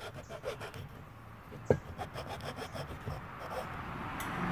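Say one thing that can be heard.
A mallet strikes a chisel with sharp, quick knocks.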